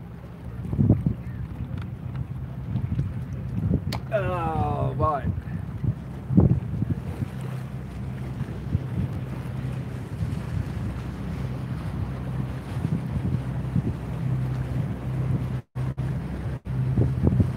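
Wind buffets loudly outdoors by open water.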